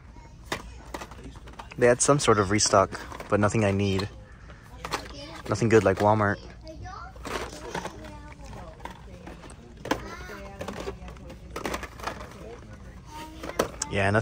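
Plastic toy packages rustle and clack as a hand pulls them from metal hooks.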